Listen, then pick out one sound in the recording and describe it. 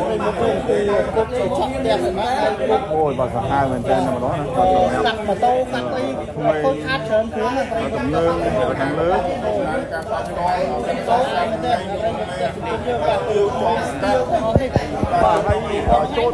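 A crowd of men talks over one another at close range.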